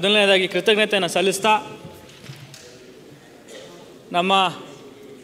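A young man speaks into a microphone in short bursts.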